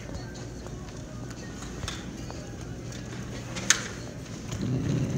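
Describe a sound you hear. Footsteps walk along a hard floor.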